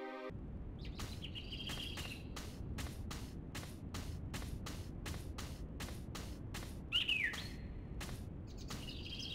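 Footsteps tap at a steady pace.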